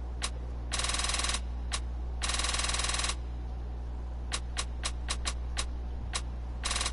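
Longer electronic chimes ring out.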